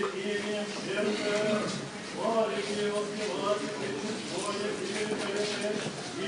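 Several men chant together in a slow, sustained melody in an echoing room.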